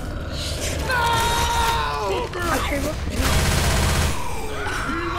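A shotgun fires with loud blasts.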